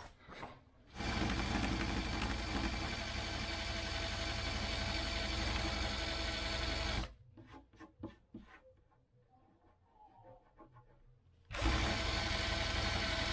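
A power drill whirs steadily with a buffing pad.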